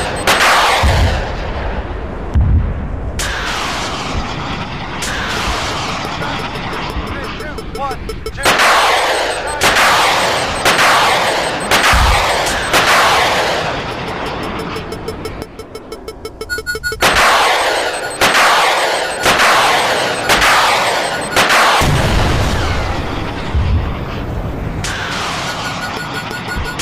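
Missiles launch one after another with loud, rushing roars that fade as they fly off.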